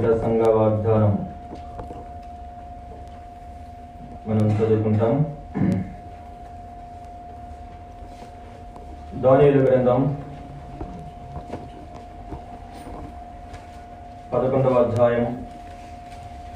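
A man speaks through a microphone and loudspeakers in short bursts with pauses, in an echoing hall.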